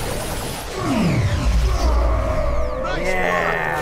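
A deep boom rumbles loudly.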